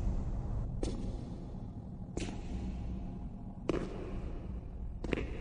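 Slow footsteps echo on a hard floor in a large stone hall.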